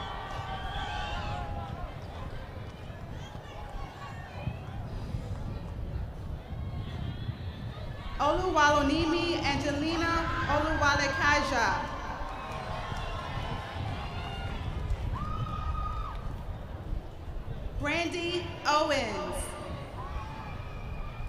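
A crowd cheers and murmurs in an open-air stadium.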